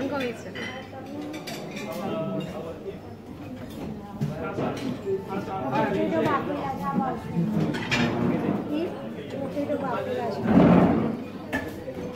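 An elderly woman talks cheerfully nearby.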